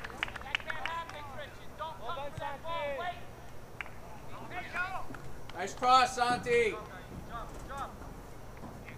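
Young men shout and call to each other across an open outdoor field.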